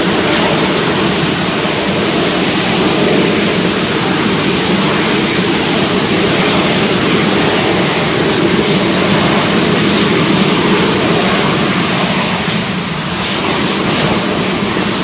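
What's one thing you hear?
Race car engines roar loudly and rumble steadily.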